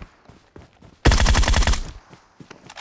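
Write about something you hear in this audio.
Rapid automatic gunfire crackles in a quick burst.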